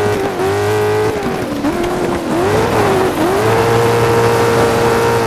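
A racing car's engine roars and revs up and down through gear changes.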